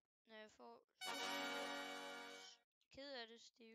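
A short bright game chime plays.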